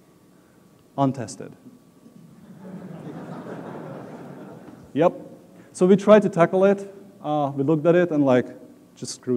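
A man speaks into a microphone in a large room.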